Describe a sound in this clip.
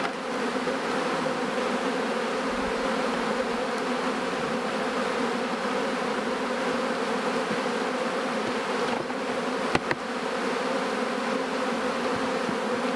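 Bees buzz steadily around an open hive.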